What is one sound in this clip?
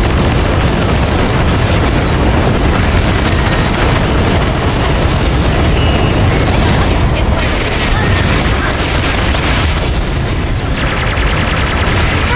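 Gunfire crackles rapidly in a battle.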